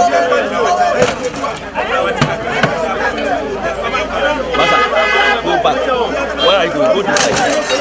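Broken wooden furniture crashes and clatters as it is thrown onto a pile.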